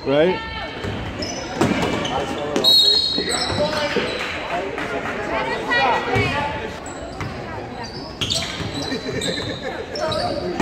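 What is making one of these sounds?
Sneakers squeak sharply on a wooden floor in a large echoing gym.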